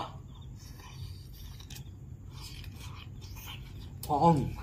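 A man chews and slurps food close by.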